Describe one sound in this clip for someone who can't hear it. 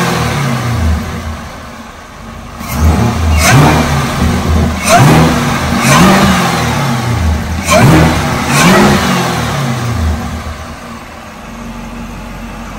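A car engine idles with a deep rumble.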